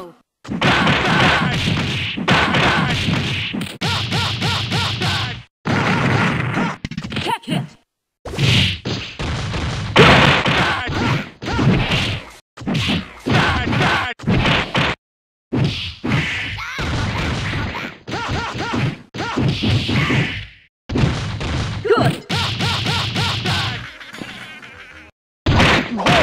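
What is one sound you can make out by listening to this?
Punches and blasts thud and crash in quick bursts.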